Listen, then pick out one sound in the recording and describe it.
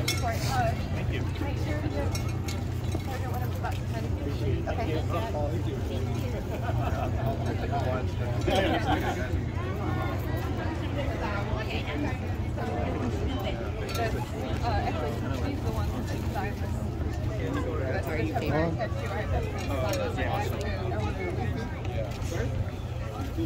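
Several adults talk nearby outdoors.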